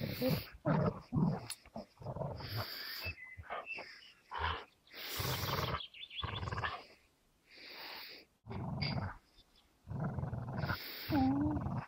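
Two dogs growl playfully in bursts.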